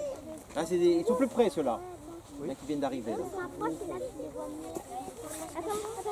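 An elderly man talks calmly to children outdoors.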